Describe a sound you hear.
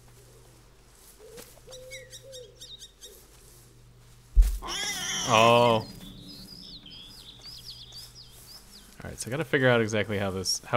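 Tall grass rustles as someone walks through it.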